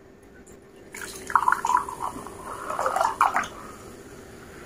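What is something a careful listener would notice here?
A fizzy drink pours into a glass, fizzing loudly.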